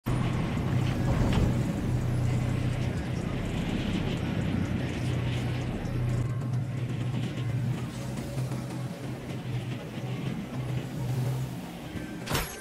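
A glider hums steadily while rushing through the wind.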